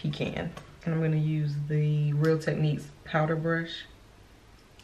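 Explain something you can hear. A young woman speaks close to a microphone in a calm voice.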